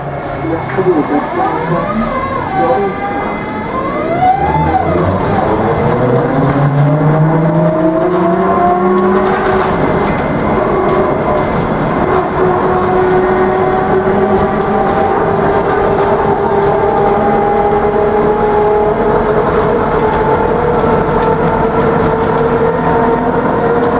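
An electric motor whines, its pitch rising and falling as the vehicle speeds up and slows down.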